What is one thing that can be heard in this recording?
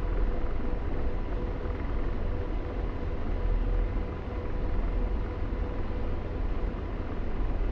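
A jet engine roars with a steady, deep rumble.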